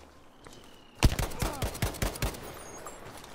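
A machine gun fires a rapid burst of loud shots.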